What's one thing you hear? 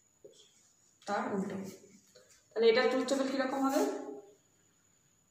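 A woman speaks calmly and clearly close by.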